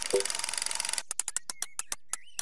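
A game's prize wheel ticks as it spins and slows down.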